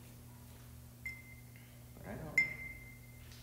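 A brush clinks against a palette.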